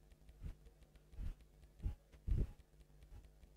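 Soft low menu thumps sound as options change.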